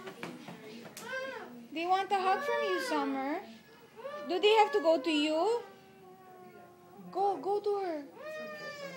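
A young child whines and wails loudly close by.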